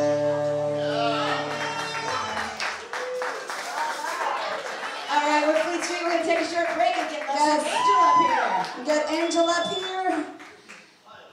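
A woman sings loudly into a microphone.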